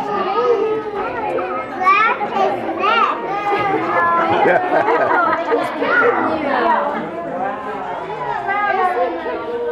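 Young children chatter and squeal excitedly close by.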